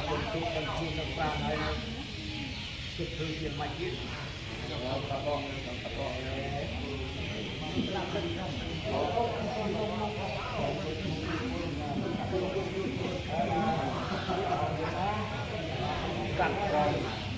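A group of men and women chant together in unison nearby.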